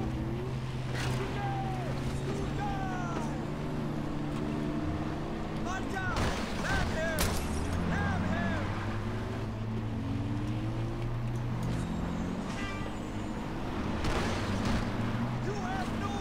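Gunshots crack sharply.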